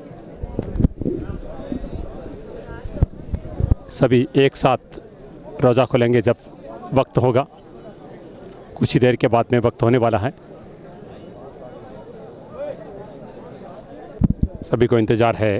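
A large crowd murmurs and chatters.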